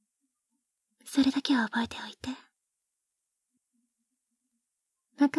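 A young woman speaks softly and closely into a microphone.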